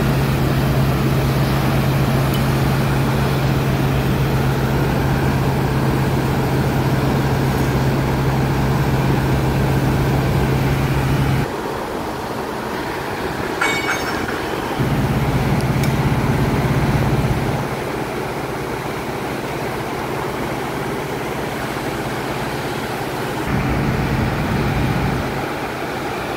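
A crane's diesel engine hums steadily nearby, now and then dropping away.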